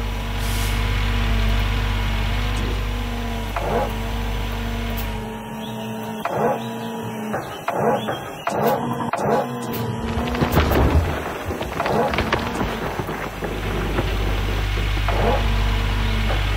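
An excavator engine hums steadily.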